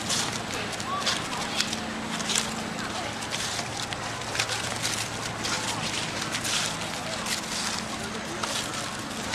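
Dry leaves rustle and crunch as small monkeys scamper over them.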